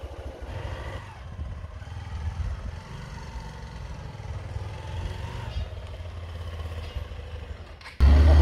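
A motorcycle engine approaches, growing louder.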